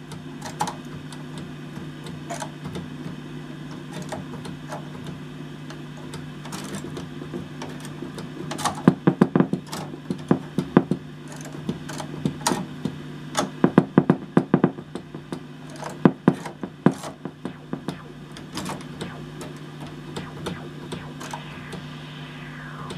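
An electric organ plays a steady held chord with a low hum.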